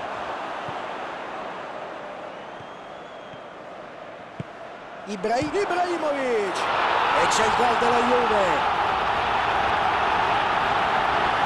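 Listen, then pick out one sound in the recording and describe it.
A stadium crowd roars and swells.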